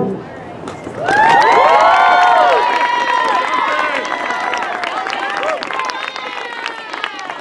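A brass band plays a lively tune with sliding, swooping notes outdoors.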